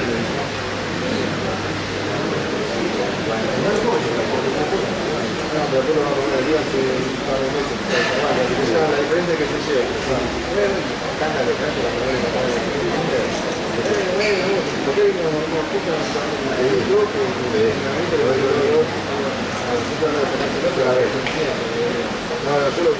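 A crowd of men and women chatters steadily in a large echoing hall.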